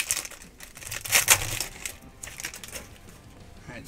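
A foil wrapper crinkles and tears as hands rip it open.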